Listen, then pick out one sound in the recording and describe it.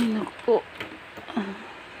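A button clicks on a machine.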